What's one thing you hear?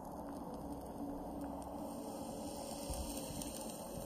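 A gas grenade bursts with a hissing puff.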